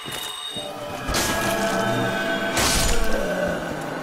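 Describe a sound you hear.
A magic spell hums and chimes briefly.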